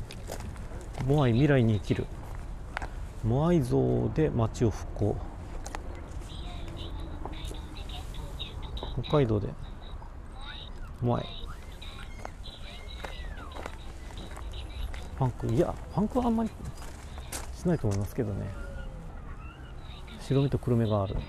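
A man talks calmly close by, in short phrases.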